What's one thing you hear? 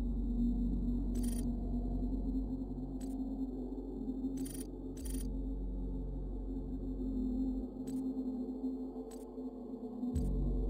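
Short electronic clicks tick as menu choices change.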